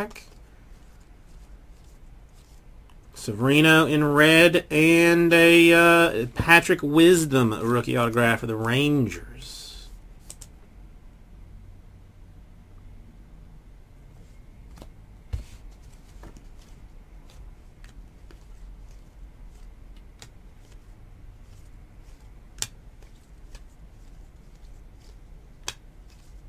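Cards rustle and click softly as they are shuffled by hand.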